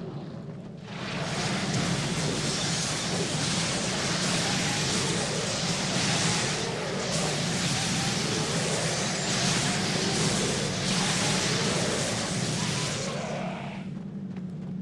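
Game spells crackle and blast in a noisy battle.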